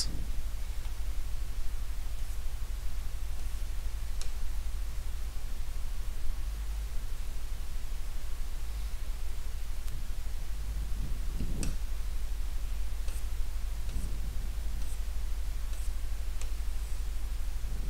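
Fingertips tap lightly on a glass touchscreen.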